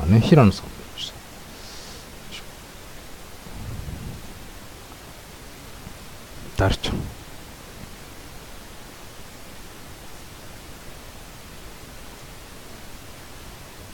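Trading cards slide and rustle as they are flipped through by hand.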